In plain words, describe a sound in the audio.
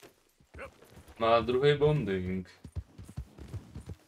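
A horse's hooves thud on grass as it trots.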